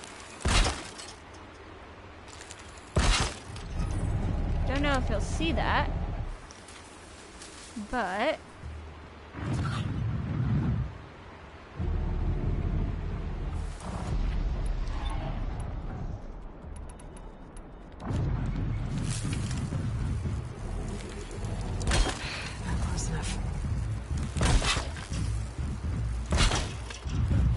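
A bow string snaps as an arrow is shot.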